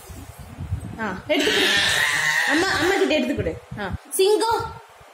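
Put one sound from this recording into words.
A toddler cries and wails loudly up close.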